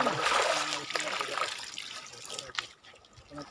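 Water splashes as a man washes in a stream.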